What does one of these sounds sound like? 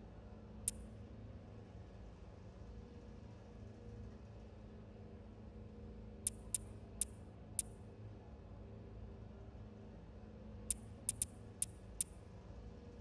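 Short, sharp menu clicks tick now and then as selections change.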